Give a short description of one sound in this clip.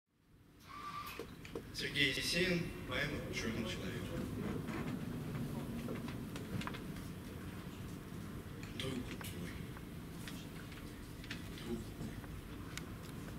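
A young man recites into a microphone through loudspeakers in a room that echoes.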